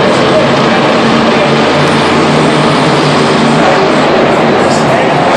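A huge crowd cheers and shouts steadily.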